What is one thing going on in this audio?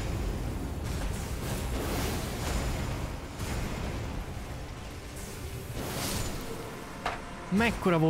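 Swords clash and ring out.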